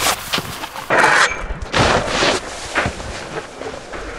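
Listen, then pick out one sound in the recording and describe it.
A snowboard scrapes along a metal rail.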